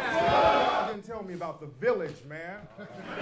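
A man speaks with animation into a microphone through loudspeakers.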